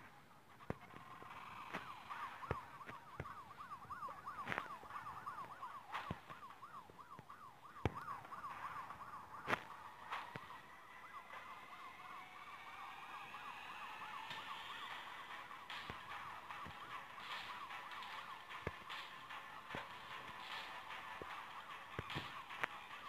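A police siren wails steadily.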